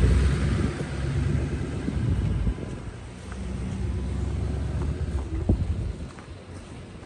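A pickup truck's engine rumbles as it pushes snow.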